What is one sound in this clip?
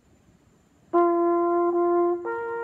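A bugle plays a loud, steady note close by, then shifts to another note.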